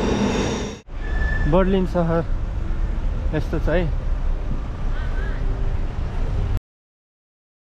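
Road traffic rumbles steadily as cars drive past.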